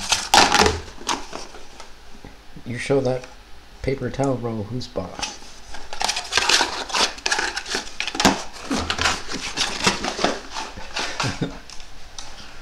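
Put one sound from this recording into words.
A cat wrestles a cardboard tube, knocking and scraping it on a tile floor.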